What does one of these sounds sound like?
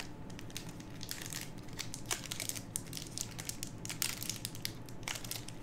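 Playing cards rustle and flick as a hand handles them.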